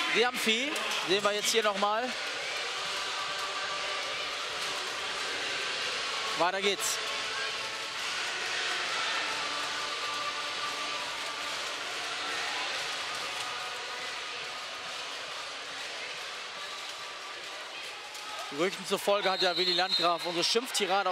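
A large crowd murmurs and cheers in an echoing indoor hall.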